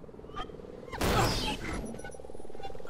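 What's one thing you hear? An explosion bursts loudly and close by.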